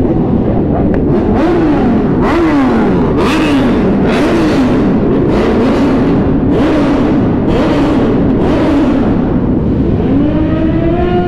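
Motorcycle engines rev sharply and echo in a tunnel.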